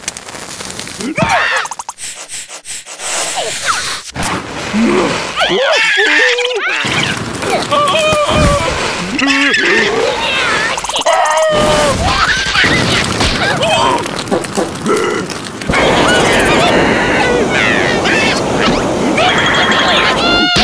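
A cartoon character gibbers and shrieks in a squeaky voice.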